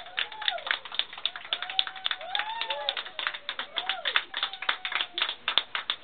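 A woman laughs and cheers excitedly nearby.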